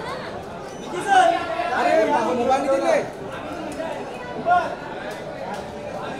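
Several people call out and chatter loudly nearby.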